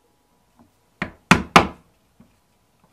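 A punch taps sharply into leather a few times.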